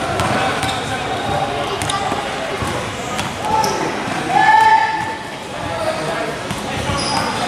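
A basketball bounces on a court floor.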